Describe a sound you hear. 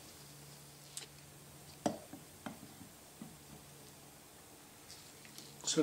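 Metal parts click and clink as they are fitted together.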